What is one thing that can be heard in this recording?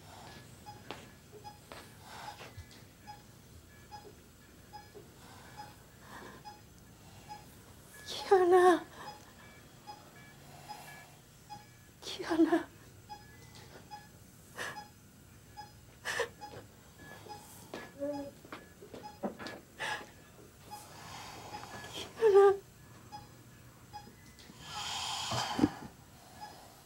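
A heart monitor beeps steadily.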